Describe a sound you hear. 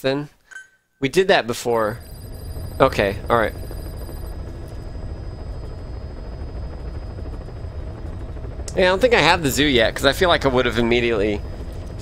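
A helicopter engine rumbles low and steady.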